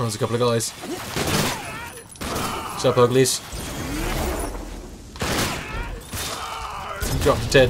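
Gunshots pop rapidly.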